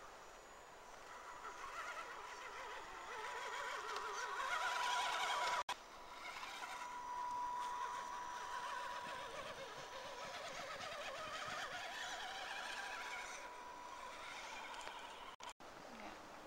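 A small electric motor whines and revs unevenly.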